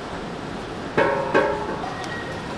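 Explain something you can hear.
A gas cylinder valve clicks as it turns.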